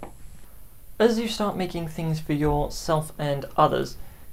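A young man speaks calmly and clearly, close to a microphone.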